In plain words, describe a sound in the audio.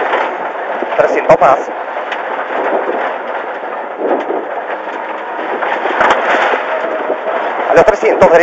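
Gravel and stones clatter against the underside of a car.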